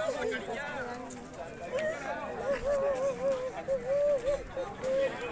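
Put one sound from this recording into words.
A group of women sing together nearby.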